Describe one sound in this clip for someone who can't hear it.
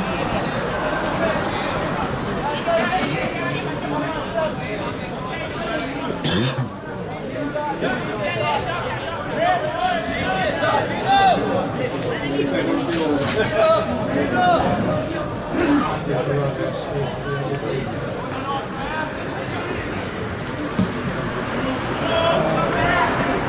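Players shout and call out to each other across an open pitch.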